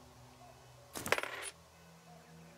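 A short jingle of coins sounds as an item is bought.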